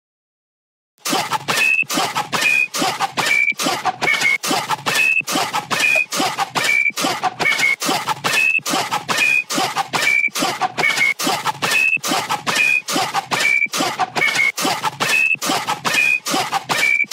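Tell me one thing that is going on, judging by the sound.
An electronic drum beat plays in a steady, punchy rhythm.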